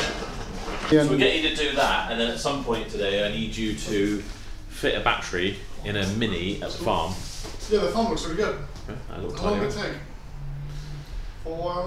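A man speaks with animation close by, indoors.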